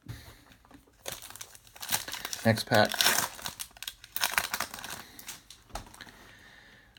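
A foil wrapper crinkles as it is torn open.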